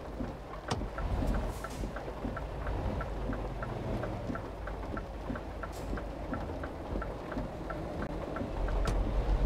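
A turn signal ticks steadily inside a truck cab.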